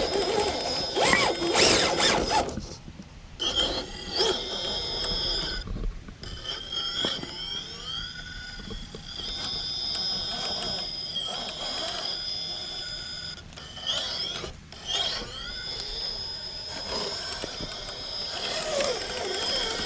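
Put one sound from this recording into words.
Rubber tyres scrape and grind on rock.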